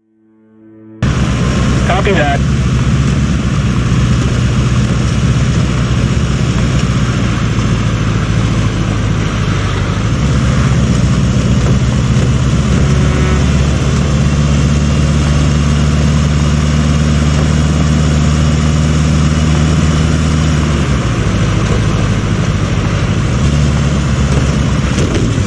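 A truck engine hums steadily, rising and falling in pitch as it drives.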